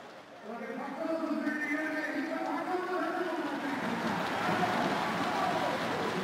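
A man talks briefly and cheerfully nearby.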